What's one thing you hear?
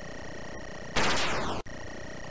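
A laser blast bursts loudly and falls away.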